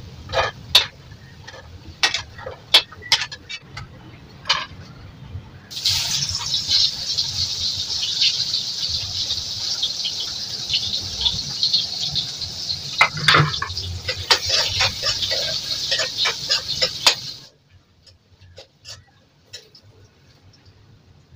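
A metal spatula clinks and scrapes against a pan.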